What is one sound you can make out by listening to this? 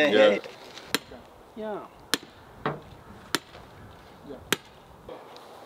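A hammer strikes metal in sharp blows.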